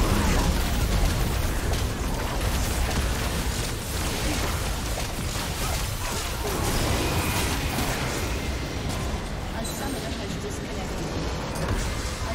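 Game spells and attacks crackle and burst in quick succession.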